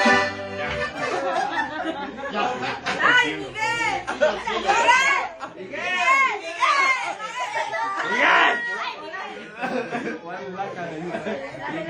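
Men and women talk and call out loudly close by.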